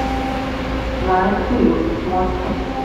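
Train doors slide open with a clunk.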